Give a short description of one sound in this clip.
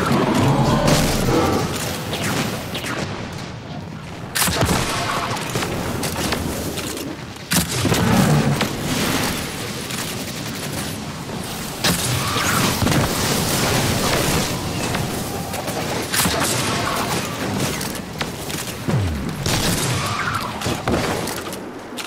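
Video game gunfire rings out.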